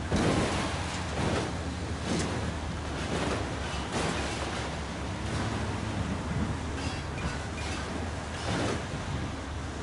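Gunfire cracks in sharp bursts.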